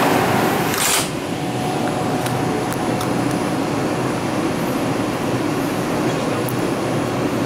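A subway train rolls slowly and quietly through a station.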